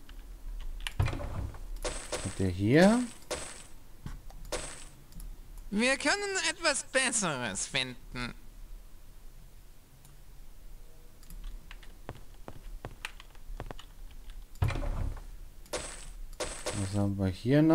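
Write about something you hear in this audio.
A man speaks casually and closely into a microphone.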